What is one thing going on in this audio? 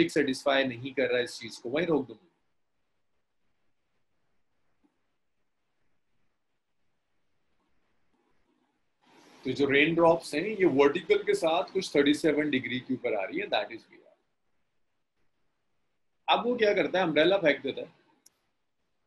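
A young man speaks calmly into a close microphone, explaining in pauses.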